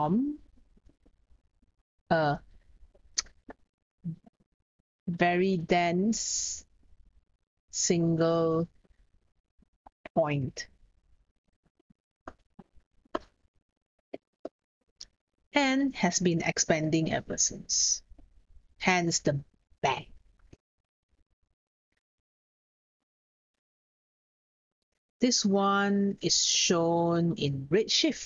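A young woman explains calmly into a close microphone, with pauses.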